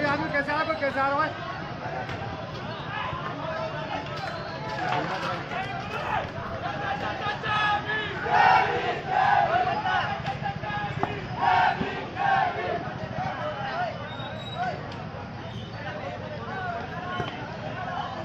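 A crowd of men shouts and clamours outdoors.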